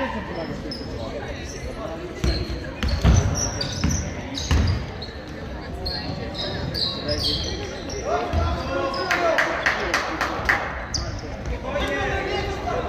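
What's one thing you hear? Sneakers squeak sharply on a hard floor, echoing in a large hall.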